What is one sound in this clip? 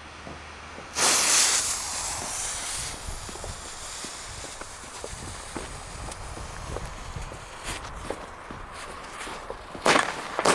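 A firework fountain hisses and crackles outdoors.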